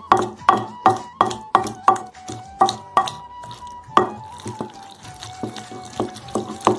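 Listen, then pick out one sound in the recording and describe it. A wooden pestle pounds and squelches wet food in a mortar.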